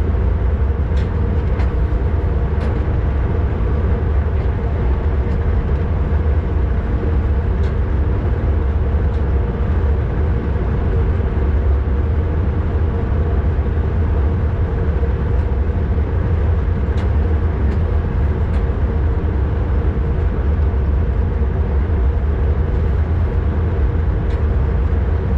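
Train wheels click now and then over rail joints.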